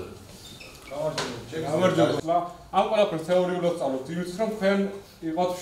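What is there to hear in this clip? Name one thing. A man speaks firmly to a group nearby.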